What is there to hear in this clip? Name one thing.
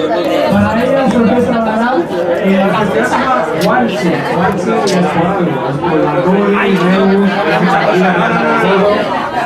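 A group of men and women sing together loudly and close by.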